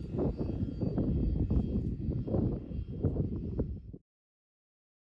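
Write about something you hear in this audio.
A jet engine roars in the distance.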